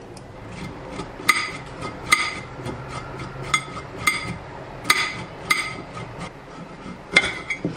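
A knife clicks and taps against a plate while cutting a carrot.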